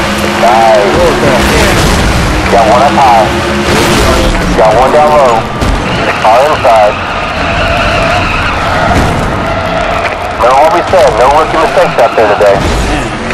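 Tyres squeal as a race car skids and spins.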